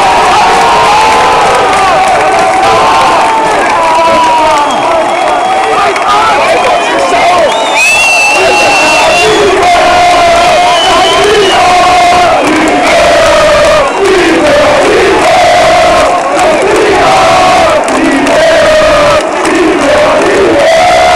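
A large crowd of men sings and chants loudly close by in an open stadium.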